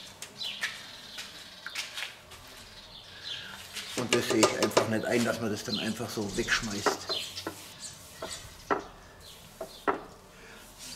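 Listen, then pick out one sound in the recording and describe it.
A brush taps against the rim of a metal can.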